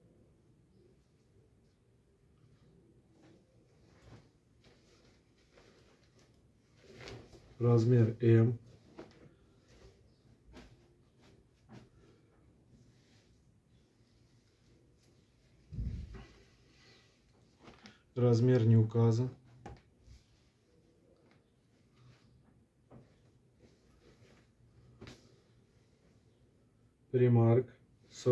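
Fabric rustles as clothes are laid down and smoothed flat.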